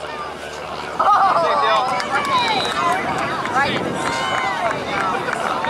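A crowd of spectators cheers and shouts outdoors from a distance.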